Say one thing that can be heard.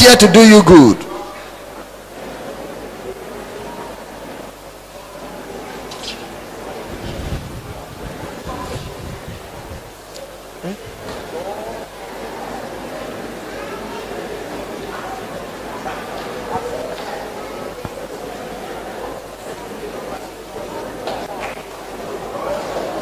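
A crowd of women sings and murmurs together.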